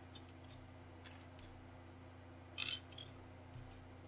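Plastic model parts tap and click against each other.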